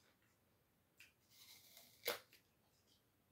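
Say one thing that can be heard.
A man bites into an apple with a crisp crunch.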